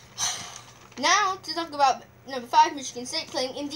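A young boy speaks close to a microphone.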